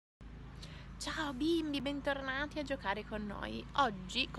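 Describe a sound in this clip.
A woman speaks with animation close to the microphone.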